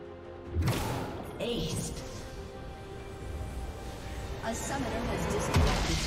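Spell effects whoosh and crackle in a fight.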